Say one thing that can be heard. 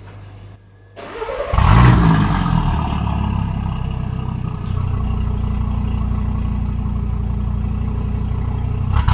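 A sports car engine starts with a roar and then idles with a deep, rumbling exhaust.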